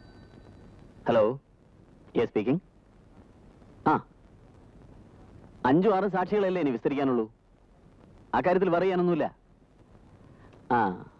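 A man speaks into a telephone in a low, worried voice.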